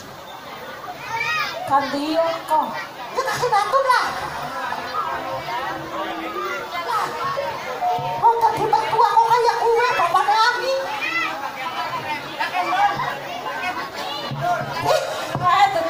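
A man sings through a loudspeaker, with loud wavering notes.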